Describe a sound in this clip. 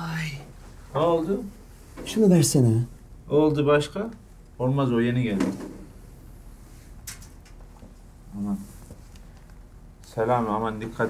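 Men talk with animation nearby, in short exchanges.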